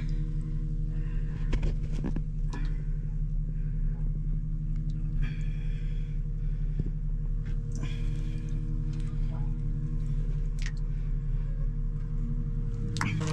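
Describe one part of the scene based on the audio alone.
Water trickles from a pipe into a tank below.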